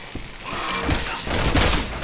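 Footsteps thud on carpeted stairs.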